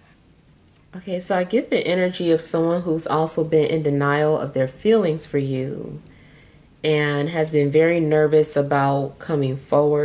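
A woman speaks calmly and closely.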